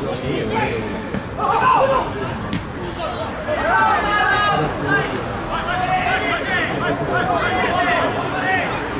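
Young men shout and call out to each other across an open outdoor field.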